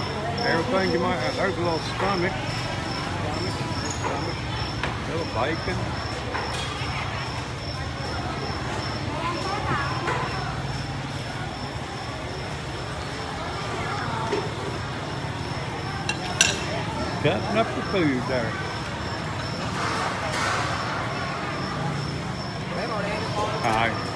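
Many voices chatter around a busy indoor market.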